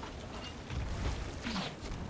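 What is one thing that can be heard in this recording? Water splashes as it is thrown from a bucket.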